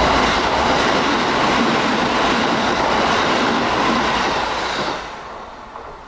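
A train rattles past close by on the tracks and quickly fades.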